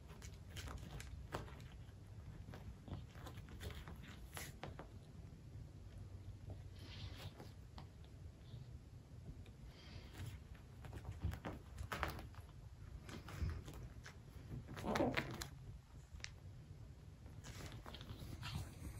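A kitten scuffles and rolls with a plush toy on carpet.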